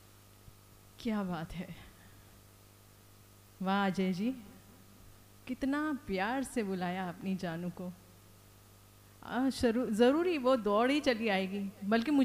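A woman sings into a microphone in short phrases.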